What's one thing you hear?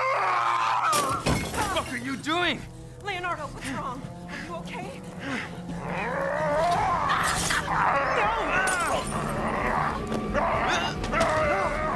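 A man groans and cries out in pain.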